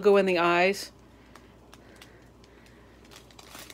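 A plastic bag crinkles softly as it is handled.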